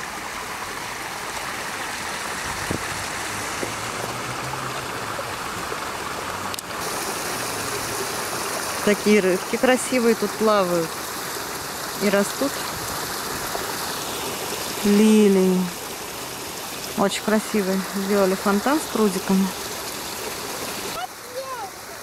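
Water splashes down a stone cascade.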